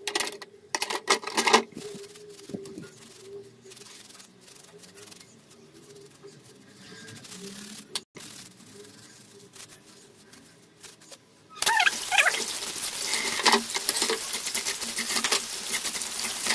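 Hands splash and scrub in soapy water.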